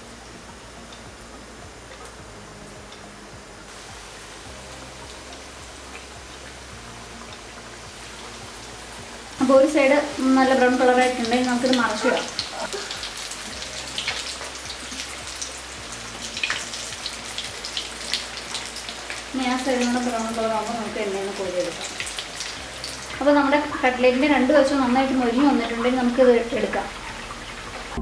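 Hot oil sizzles and crackles steadily in a frying pan.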